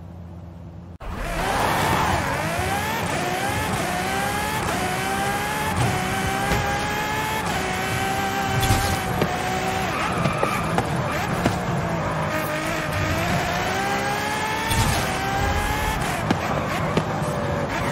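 A sports car engine roars and revs, rising and falling in pitch as it shifts gears.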